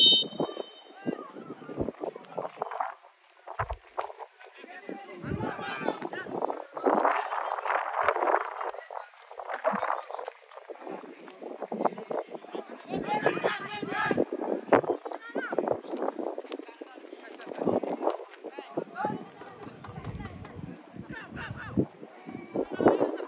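Young men shout to each other across an outdoor football pitch.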